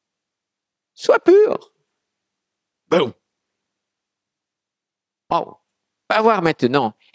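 A middle-aged man speaks slowly and deliberately into a microphone, with long pauses.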